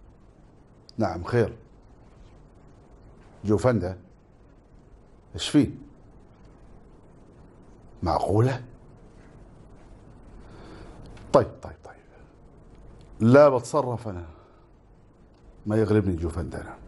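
A middle-aged man speaks close by in short, calm phrases, with pauses between them.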